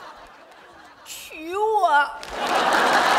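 A woman speaks plaintively.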